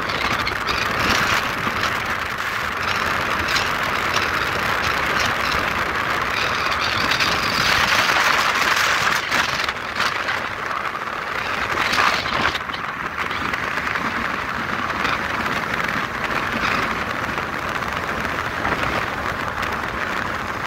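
Wind and road noise rush past a vehicle driving on asphalt at highway speed.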